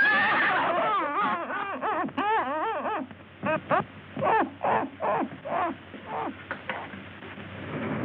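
A woman screams.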